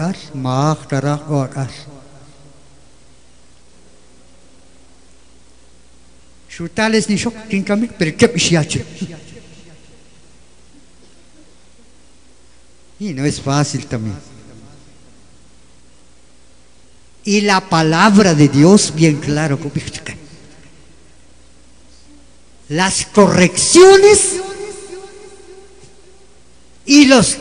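An elderly man speaks with feeling into a microphone, heard through a loudspeaker, in bursts with long pauses.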